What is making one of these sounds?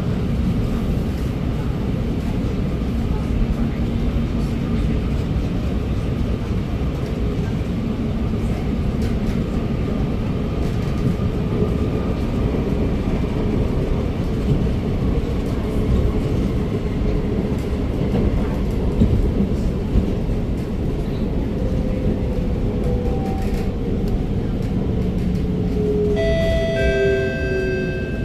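A train carriage rumbles and hums steadily as it rolls along the track.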